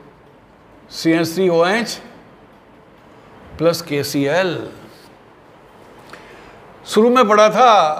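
An elderly man speaks in bursts, explaining slowly and clearly at close range.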